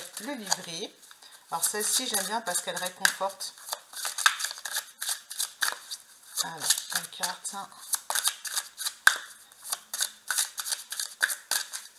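Playing cards riffle and slap together as they are shuffled.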